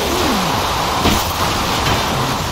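A car crashes hard into a post with a heavy thud.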